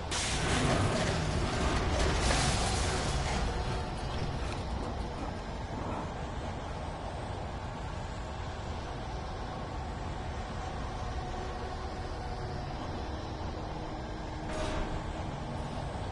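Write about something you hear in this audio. Footsteps clang on a metal walkway.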